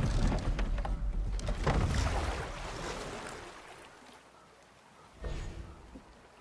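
Fast water rushes and churns around a wooden boat.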